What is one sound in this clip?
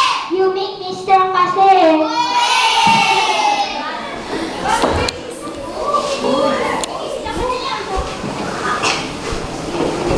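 A young boy speaks into a microphone, heard through a loudspeaker.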